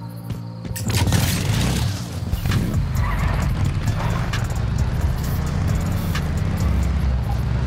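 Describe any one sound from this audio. A motorcycle engine starts up and roars.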